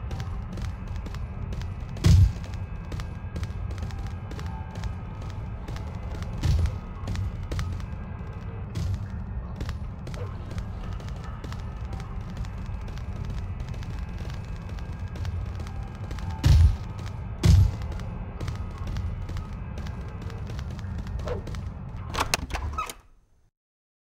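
Footsteps tap on a hard stone floor.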